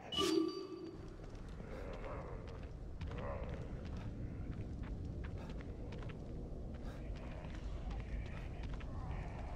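Footsteps rustle through tall grass and then tread on hard ground.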